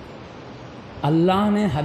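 An elderly man begins a loud, drawn-out chant through a microphone.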